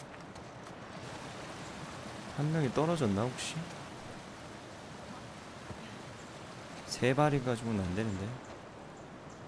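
Water rushes steadily down a nearby waterfall.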